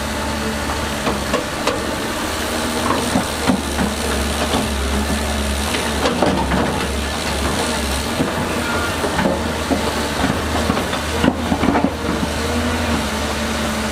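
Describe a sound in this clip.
Rocks and dirt clatter and scrape under an excavator bucket.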